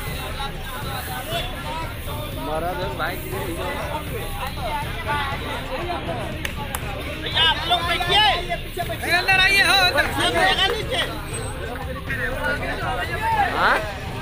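A man shouts slogans loudly outdoors.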